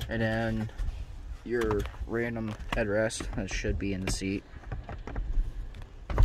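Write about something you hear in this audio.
A headrest's metal posts click and rattle as a headrest is pulled from a seat.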